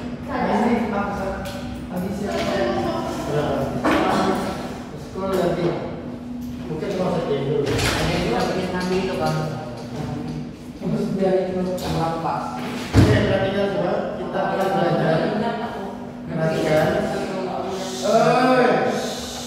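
A man speaks calmly to a group from a few metres away.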